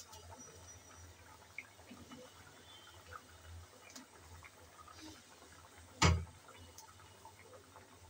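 Fried fish pieces plop into a simmering sauce.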